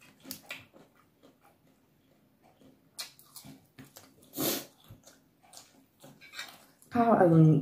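A woman crunches and chews crisp food close to a microphone.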